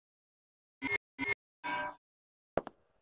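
Electronic menu tones beep and chime.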